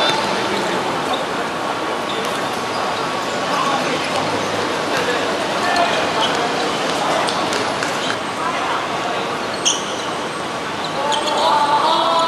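Young men shout to each other during a game.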